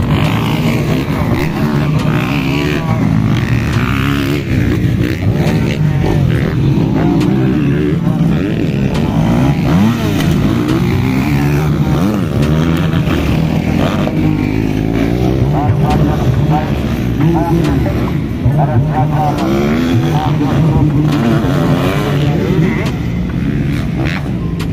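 Motorcycle engines rev and whine loudly outdoors.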